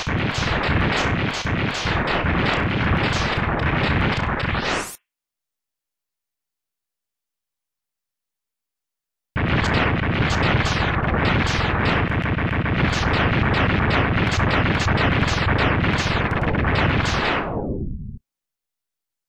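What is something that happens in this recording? Rapid video game explosions burst over and over.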